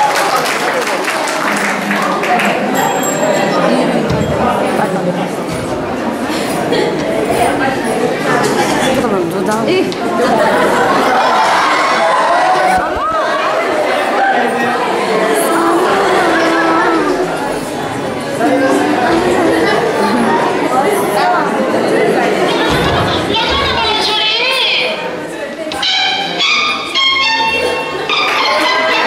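Music with singing plays loudly through a loudspeaker in a large room.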